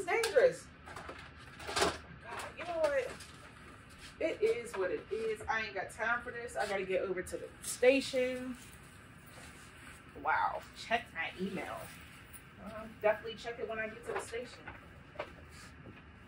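A young woman talks calmly nearby.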